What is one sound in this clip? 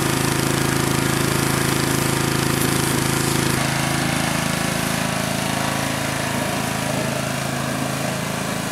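A jet of water hisses against a tyre.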